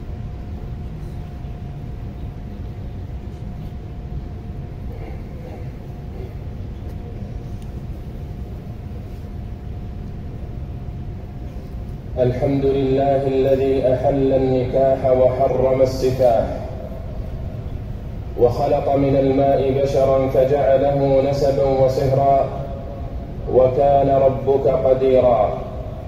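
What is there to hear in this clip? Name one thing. A large crowd murmurs softly outdoors.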